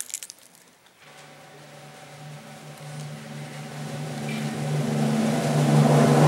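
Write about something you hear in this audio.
A brass band starts playing a sustained chord that slowly swells louder in an echoing hall.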